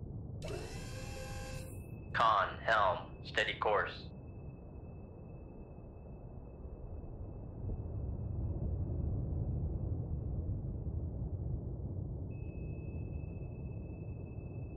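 A submarine's engine rumbles low and steady underwater.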